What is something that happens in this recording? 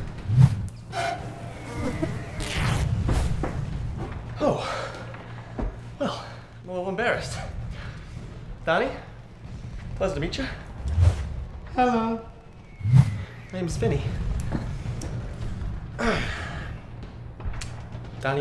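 A young man shouts and groans in distress close by.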